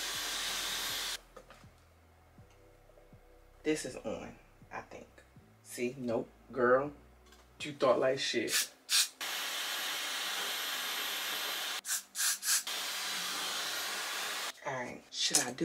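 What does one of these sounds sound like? A hair dryer blows with a steady rushing whir, starting and stopping.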